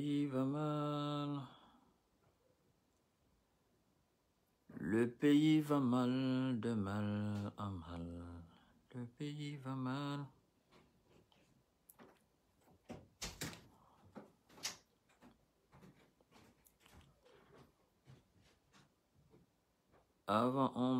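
A man sings slowly and softly, close by, with pauses between lines.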